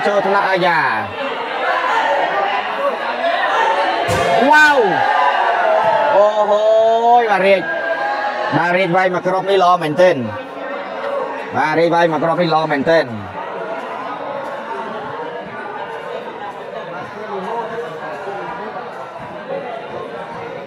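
A crowd of spectators chatters and murmurs in a large echoing hall.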